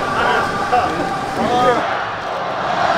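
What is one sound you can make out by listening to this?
Young men chatter and call out close by.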